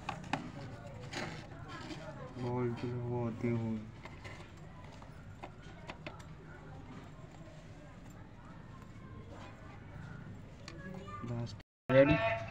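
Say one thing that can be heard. Metal lamp parts clink and scrape as they are handled.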